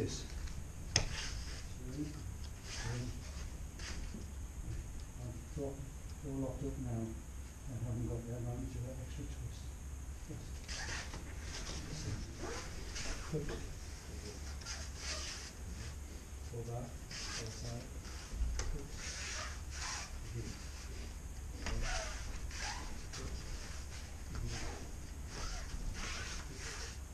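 Bare feet thump and slide on a padded mat.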